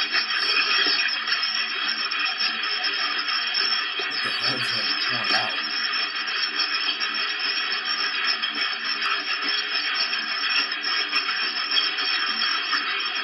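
A young man talks with animation close to a webcam microphone.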